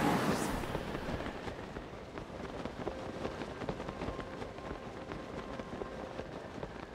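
Wind rushes softly and steadily.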